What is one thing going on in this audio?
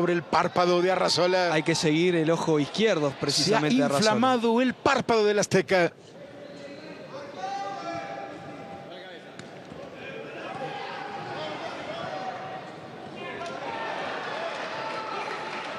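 A large crowd murmurs and shouts in a big arena.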